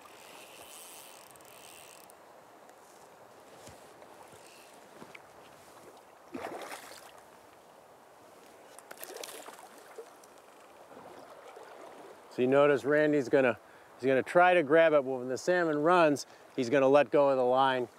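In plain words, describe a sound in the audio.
River water flows gently.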